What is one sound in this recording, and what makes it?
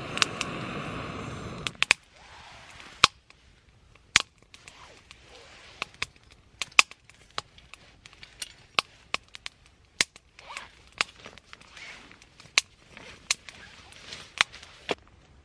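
A wood fire crackles and pops in a small stove.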